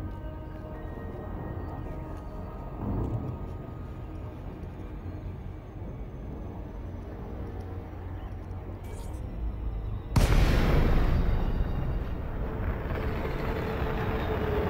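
A spaceship engine hums low and steady.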